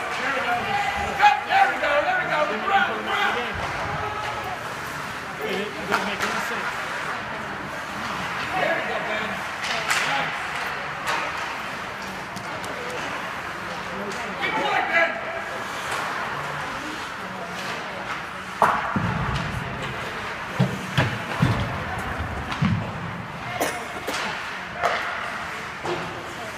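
Spectators talk and call out loudly in an echoing rink.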